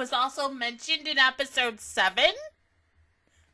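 A young woman speaks with animation, close into a microphone.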